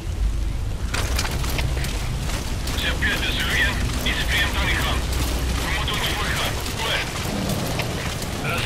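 Clothing and gear rustle as a person crawls along the ground.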